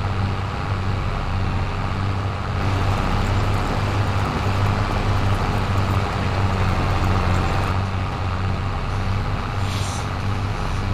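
Tyres rumble over a rough field.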